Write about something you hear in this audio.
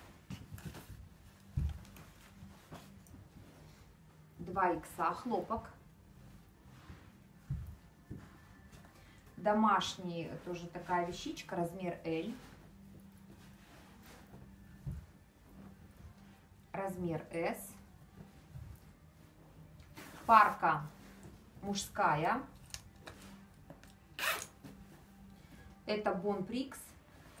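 Fabric rustles softly as clothes are handled and smoothed.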